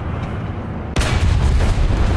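A tank cannon fires with a sudden loud boom.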